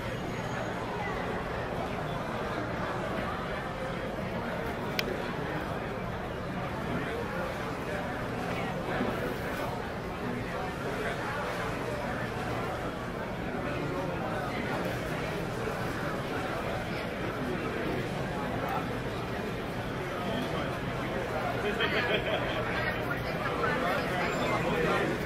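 A crowd of people chatters in a busy room.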